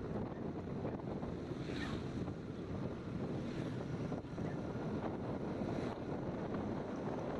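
Wind rushes past a moving scooter.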